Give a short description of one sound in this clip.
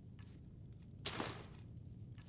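Coins jingle briefly.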